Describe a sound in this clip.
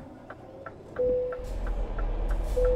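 A truck engine starts up and roars.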